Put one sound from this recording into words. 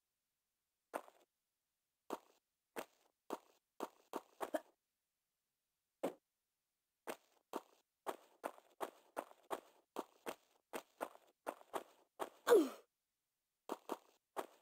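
Footsteps tap on stone at a quick, uneven pace.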